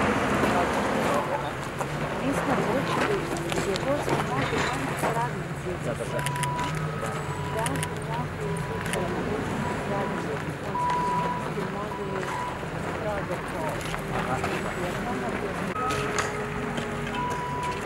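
A middle-aged woman talks calmly nearby, outdoors.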